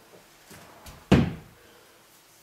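A heavy dumbbell thuds down onto the floor.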